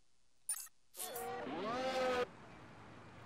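A racing car engine roars at high revs as the car speeds past.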